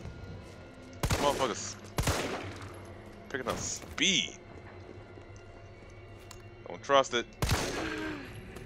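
Pistol shots ring out sharply with echoes.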